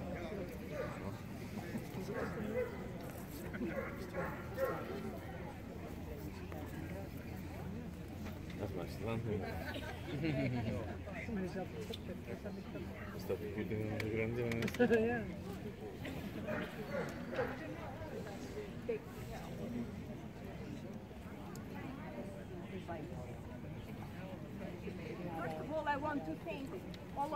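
Men and women chat quietly at a distance outdoors.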